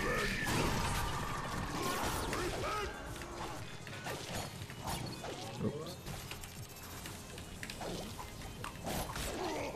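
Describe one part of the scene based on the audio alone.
Video game weapons fire and zap in quick bursts.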